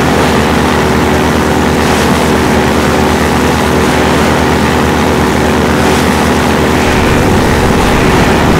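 Water splashes and rushes under a boat hull.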